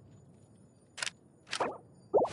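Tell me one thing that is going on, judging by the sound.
Short soft menu clicks sound.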